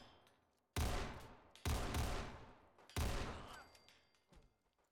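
Three pistol shots ring out, each echoing briefly.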